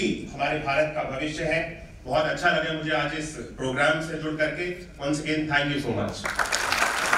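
A young man speaks with animation through a microphone in a large hall.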